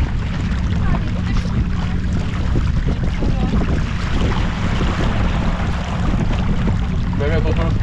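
Water rushes and splashes against a sailboat's hull.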